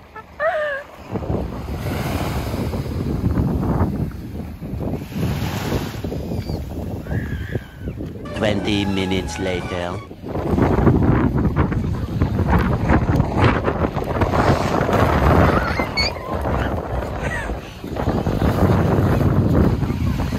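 Small waves wash onto a shore.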